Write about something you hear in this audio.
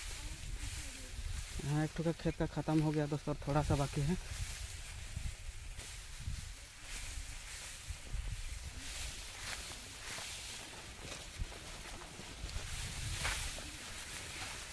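Dry rice stalks rustle against a shoulder.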